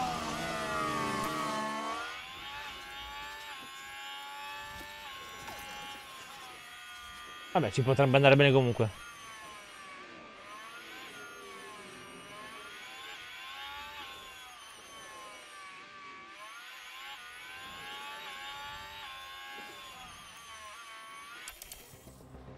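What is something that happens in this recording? A racing car engine whines steadily, rising and falling in pitch.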